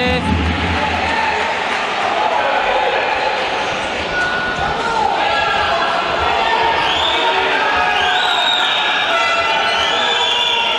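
A large crowd chants and cheers loudly in an echoing hall.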